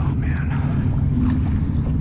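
Water splashes as a fish thrashes at the surface.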